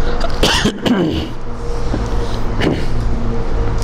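A man coughs into his hand close to a microphone.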